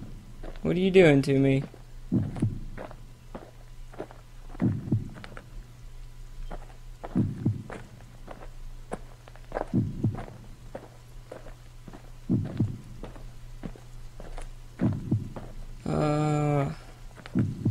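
A young man speaks briefly into a microphone.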